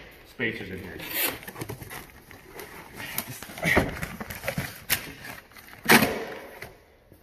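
Cardboard and paper rustle and crinkle as a box is opened.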